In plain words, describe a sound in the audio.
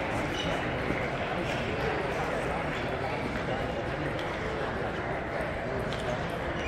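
Table tennis balls click on paddles and tables throughout a large echoing hall.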